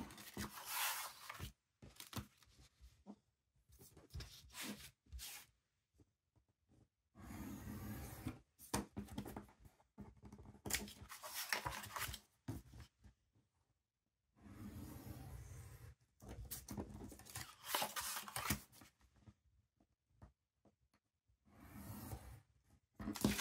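Paper slides and rustles against paper.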